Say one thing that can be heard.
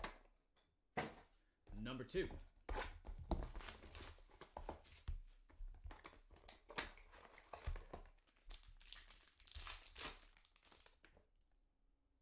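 Plastic wrappers crinkle and rustle as hands handle and open card packs.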